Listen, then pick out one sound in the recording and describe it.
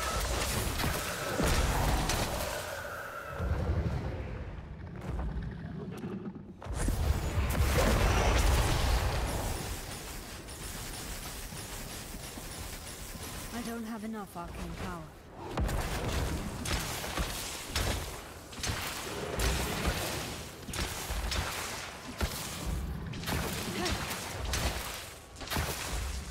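Heavy booming impacts rumble under the fighting.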